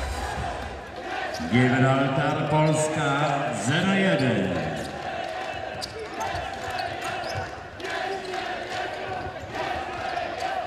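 A large indoor crowd roars and cheers steadily, echoing in a hall.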